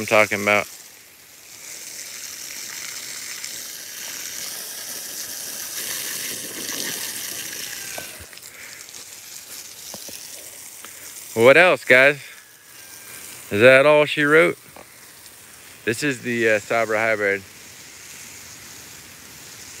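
Water sprays from a hose and splashes onto leaves and soil.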